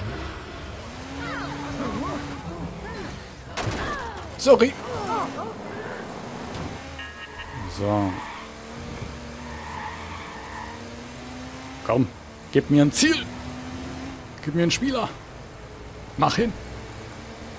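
A car engine revs and hums as a car drives fast.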